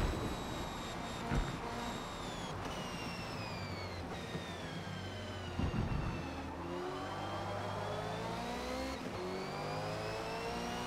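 A racing car engine whines loudly, dropping in pitch as the car slows and then rising again as it speeds up.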